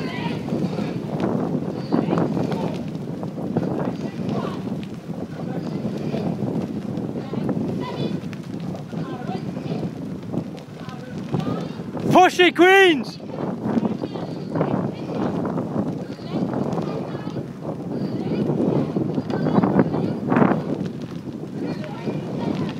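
Oars dip and splash rhythmically in water in the distance.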